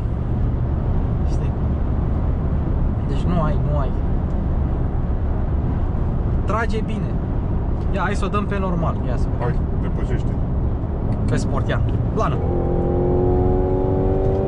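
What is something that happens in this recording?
A car engine hums and tyres roar steadily on the road.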